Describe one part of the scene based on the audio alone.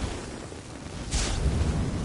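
A blast of fire roars and crackles.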